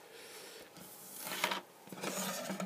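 A hand presses down on a plastic lamp cover with a soft knock.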